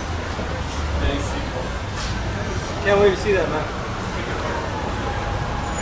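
Traffic hums steadily in the background outdoors.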